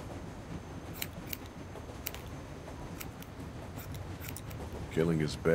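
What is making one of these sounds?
Scissors snip through hair with short, crisp clicks.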